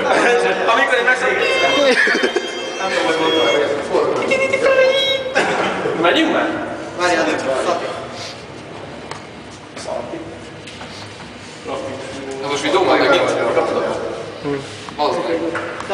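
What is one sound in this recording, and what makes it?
A group of young men sing loudly together in an echoing hallway.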